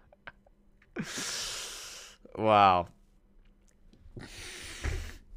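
A young man laughs loudly, close to a microphone.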